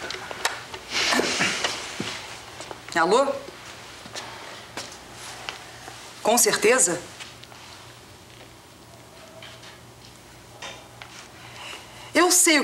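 A woman talks into a telephone.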